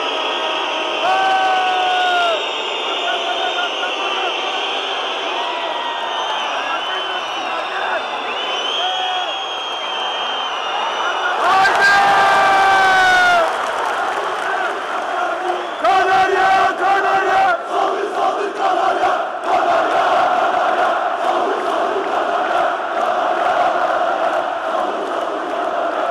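A large crowd chants and cheers loudly in a big echoing arena.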